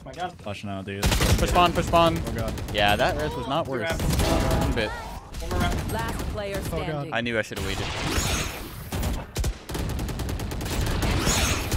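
Gunshots crack rapidly.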